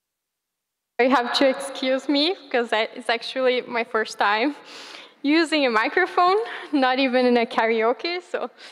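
A woman speaks steadily into a microphone in a large hall.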